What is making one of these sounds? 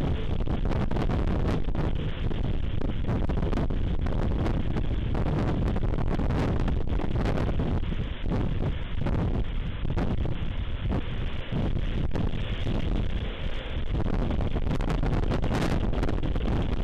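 Strong wind blusters and roars steadily outdoors.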